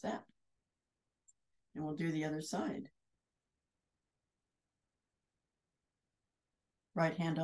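A middle-aged woman speaks calmly into a nearby microphone, in short bursts with pauses.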